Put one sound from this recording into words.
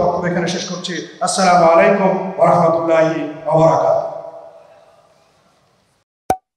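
A man speaks with animation into a microphone over loudspeakers, his voice echoing.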